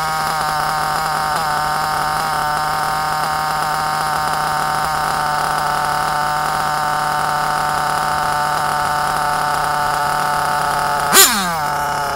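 A small nitro engine idles steadily nearby with a high buzzing drone.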